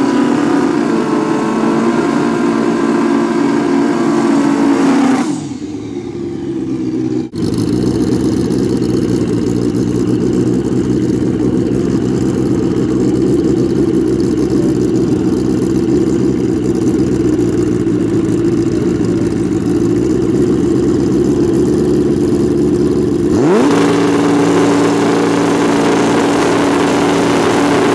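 A motorcycle engine roars loudly and revs.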